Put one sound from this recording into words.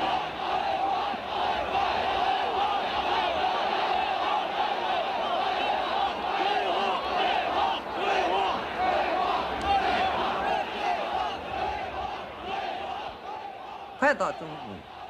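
A large crowd chants and roars outdoors.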